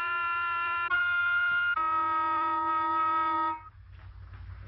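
A small horn plays a few held notes up close.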